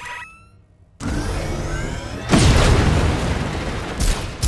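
An electric energy blast crackles and roars.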